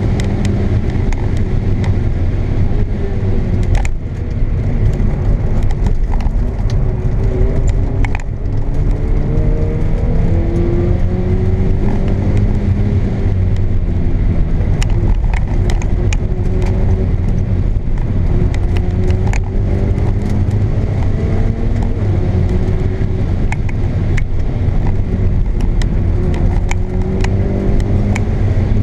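Tyres rumble on a rough road.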